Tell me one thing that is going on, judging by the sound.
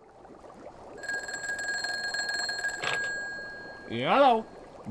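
A telephone rings loudly.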